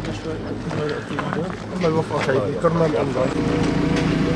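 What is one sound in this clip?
A man speaks in a strained voice close by.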